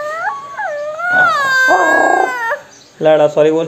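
A young child squeals loudly up close.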